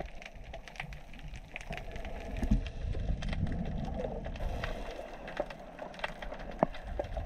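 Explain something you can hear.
Water swirls and rumbles with a low, muffled sound, heard underwater.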